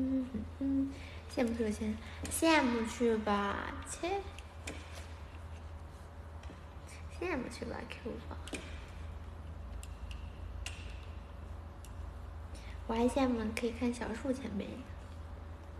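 A young woman speaks playfully close to a phone microphone.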